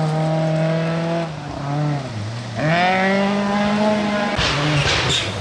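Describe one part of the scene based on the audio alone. Gravel crunches and sprays under a car's tyres.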